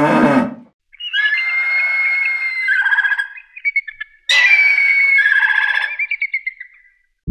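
An eagle screeches in shrill calls.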